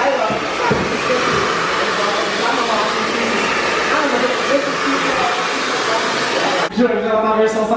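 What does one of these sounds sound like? A hair dryer blows with a steady roar.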